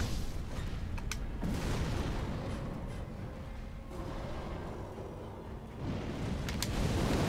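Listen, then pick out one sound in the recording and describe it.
A sword swings and strikes with sharp metallic rings.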